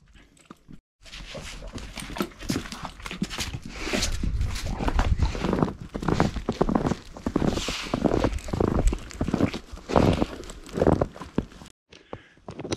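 A dog's paws crunch through fresh snow.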